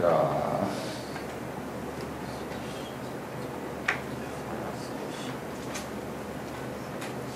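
An elderly man speaks calmly into a microphone, reading out.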